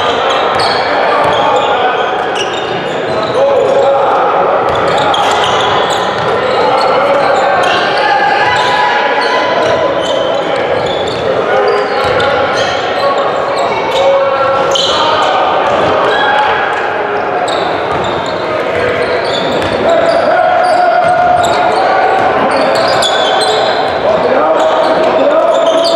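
Spectators and players talk and call out in an echoing gym.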